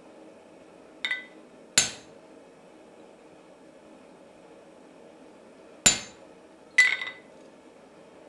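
Steel pieces clink against each other on an anvil.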